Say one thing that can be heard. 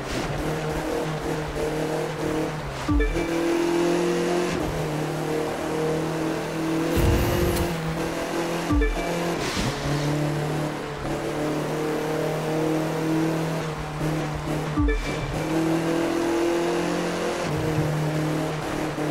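A racing car engine roars at high revs, dropping briefly with each gear change.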